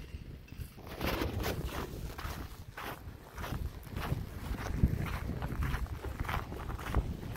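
Footsteps crunch on loose gravel at a steady walking pace.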